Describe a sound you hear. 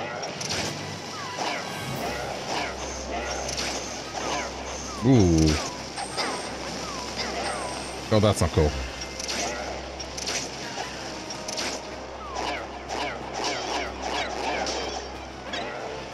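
Sword slashes swish and clang in a video game.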